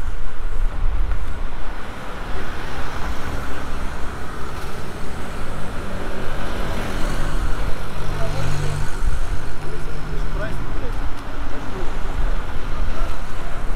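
Traffic hums and rumbles along a street outdoors.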